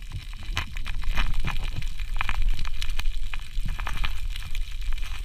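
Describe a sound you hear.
Water churns and rumbles with crackling clicks, heard underwater.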